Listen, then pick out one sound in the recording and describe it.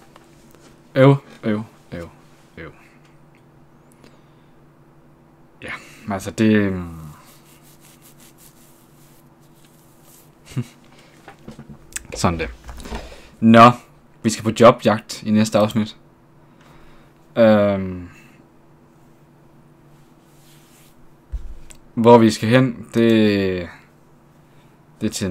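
A man talks casually into a close microphone, with pauses.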